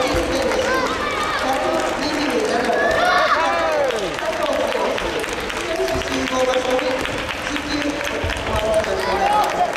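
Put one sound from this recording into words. A table tennis ball clicks against paddles and the table in a large echoing hall.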